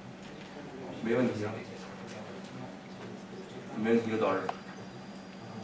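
A man speaks briefly in a room.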